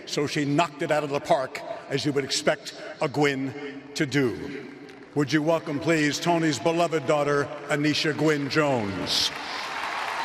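An elderly man speaks with feeling through a microphone in a large echoing space.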